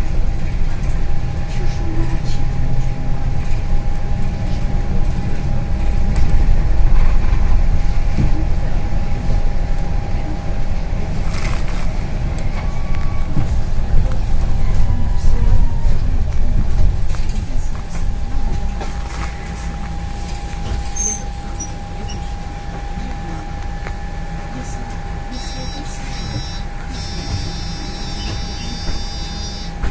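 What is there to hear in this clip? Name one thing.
A bus engine rumbles low and steady as the bus drives along, then quietens as it slows.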